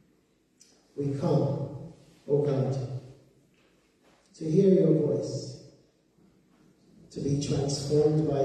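A man speaks calmly into a microphone, with pauses, in a lightly echoing room.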